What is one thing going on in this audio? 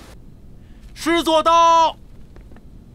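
A man shouts a loud command nearby.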